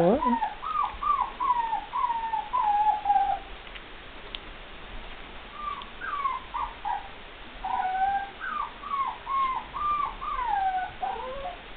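A puppy whines in short, high cries.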